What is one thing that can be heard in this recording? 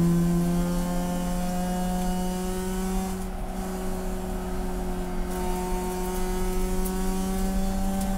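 A race car engine roars loudly from inside the cabin, easing off and then building again.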